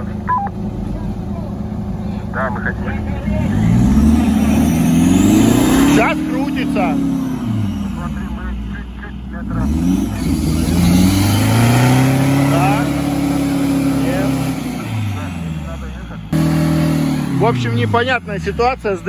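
A small electric motor whines, rising and falling in pitch as it climbs and slows.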